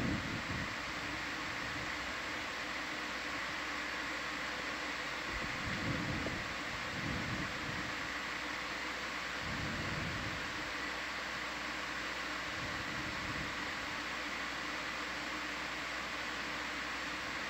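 A submersible's machinery hums steadily underwater.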